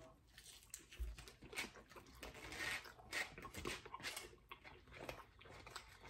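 Food crunches as a man eats.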